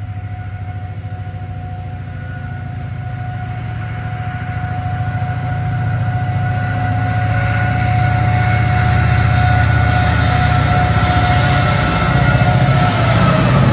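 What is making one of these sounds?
A freight train's diesel engine rumbles as it approaches and grows louder.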